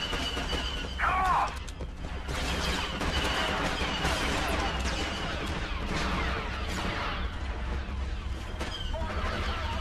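Laser blasters fire in rapid zapping bursts.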